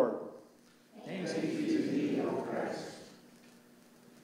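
A congregation responds together in a low murmur.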